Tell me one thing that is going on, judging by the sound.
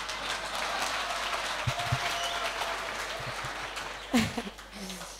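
A crowd applauds and cheers in a large echoing hall.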